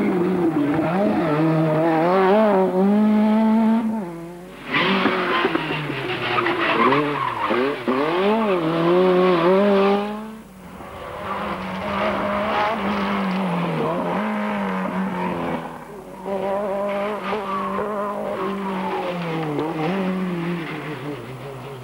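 A rally car engine roars loudly, revving up and down as the car accelerates through bends.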